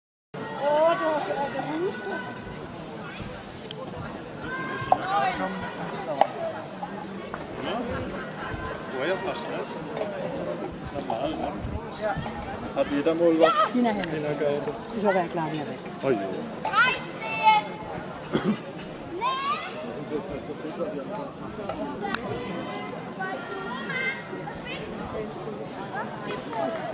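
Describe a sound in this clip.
Adults chat nearby in a calm murmur.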